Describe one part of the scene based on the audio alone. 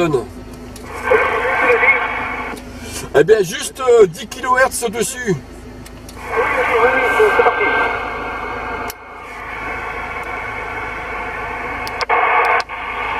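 A CB radio hisses with static through its speaker.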